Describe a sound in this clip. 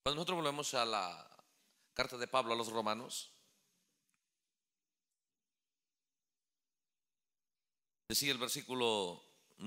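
A man speaks with emphasis through a microphone, pausing between phrases.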